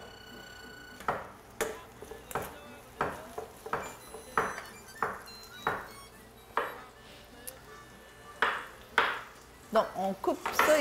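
A knife chops on a cutting board with sharp knocks.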